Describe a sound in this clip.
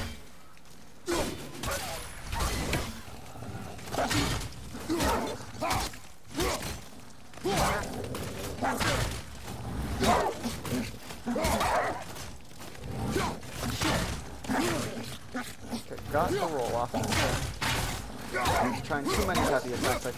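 Axe blows strike with heavy thuds.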